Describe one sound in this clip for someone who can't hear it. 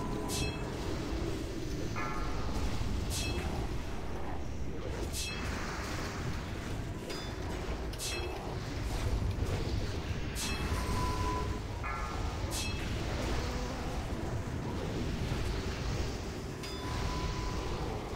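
Magic spells crackle and boom during a fantasy battle.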